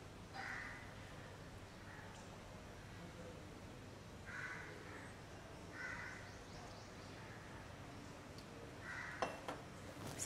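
Water pours and splashes into a shallow tray.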